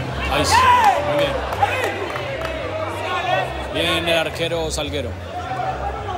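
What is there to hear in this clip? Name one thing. A crowd of spectators chatters and calls out outdoors.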